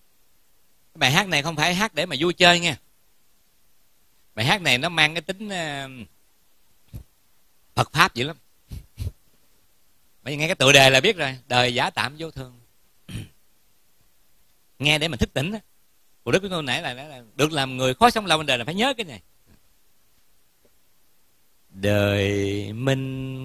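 A middle-aged man speaks calmly into a microphone, in bursts with pauses.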